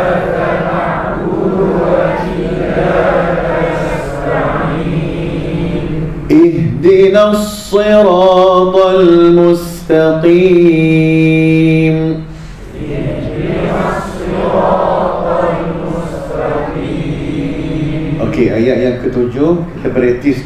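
A man speaks steadily into a microphone.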